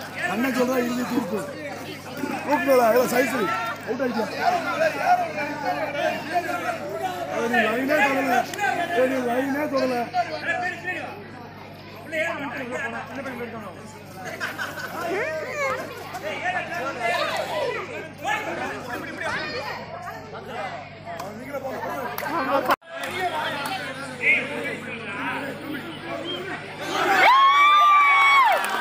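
A crowd of men shout and cheer outdoors.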